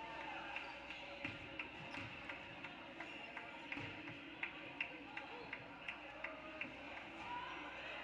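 Cheerleaders clap in a steady rhythm.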